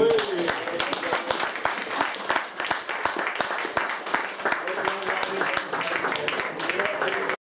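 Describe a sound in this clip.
A small group of women and men sing together in a room.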